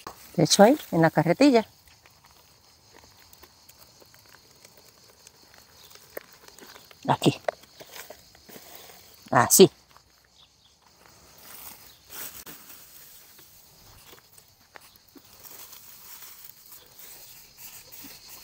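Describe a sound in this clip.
Dry soil and debris rustle.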